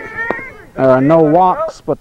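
A metal bat clanks against a ball.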